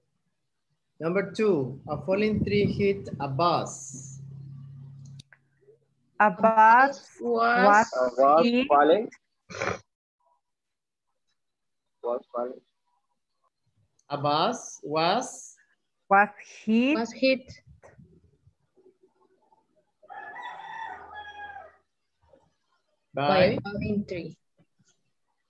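A woman speaks calmly through a microphone, pausing now and then.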